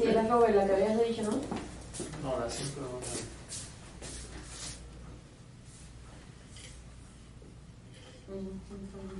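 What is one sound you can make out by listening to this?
A middle-aged man speaks in a lecturing tone, close by.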